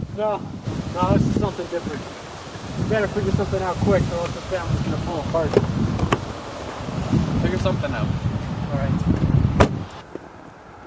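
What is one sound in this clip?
A man speaks calmly outdoors close by.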